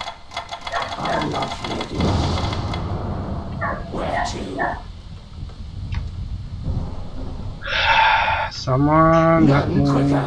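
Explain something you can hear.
A fantasy game hero's spell effects whoosh and crackle.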